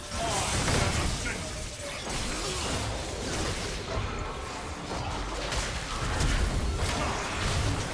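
Video game spells and hits crackle and boom in a fight.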